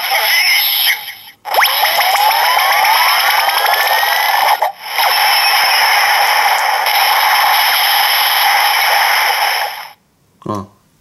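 A toy plays loud, buzzing electronic sound effects with rising, sweeping tones.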